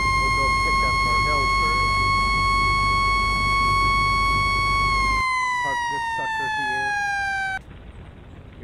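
A fire truck siren sounds loudly and steadily, then drops in pitch and cuts off.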